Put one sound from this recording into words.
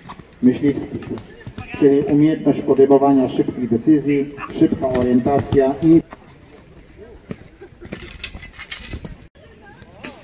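A horse gallops across soft ground.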